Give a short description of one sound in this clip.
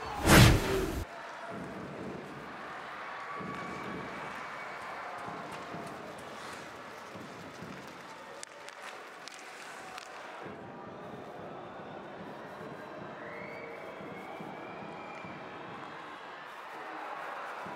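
Ice skates scrape and carve across ice.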